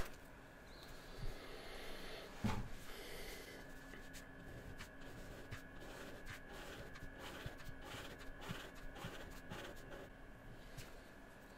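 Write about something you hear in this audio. A felt-tip marker squeaks and scratches softly on paper.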